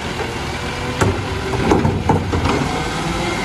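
A bin thuds and bangs as a truck's arm tips it out.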